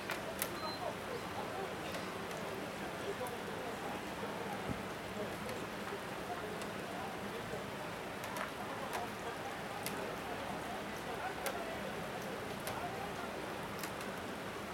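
Rain falls steadily on umbrellas outdoors.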